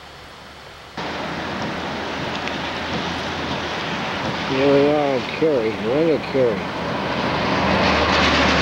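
Rain patters on a car.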